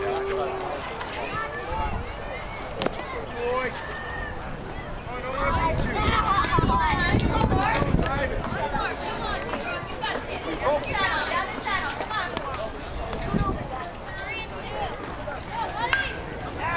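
A crowd of children and adults cheers and shouts excitedly nearby.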